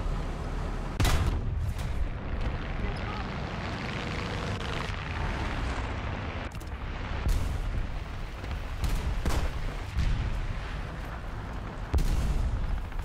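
Cannon shots and shell blasts boom loudly.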